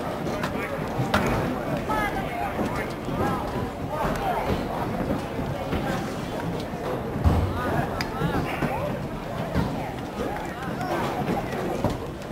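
Lacrosse sticks clack against each other now and then.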